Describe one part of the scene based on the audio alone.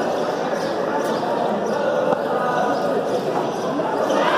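A hand-pelota ball smacks against a concrete wall in an echoing court.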